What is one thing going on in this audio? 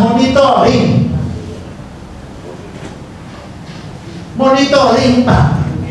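A middle-aged man speaks with animation into a microphone in an echoing room.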